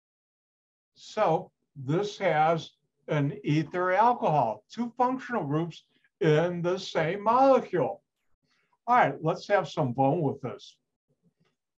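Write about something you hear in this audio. An older man speaks calmly through a microphone on an online call.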